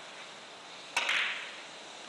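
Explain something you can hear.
A cue tip strikes a billiard ball with a sharp click.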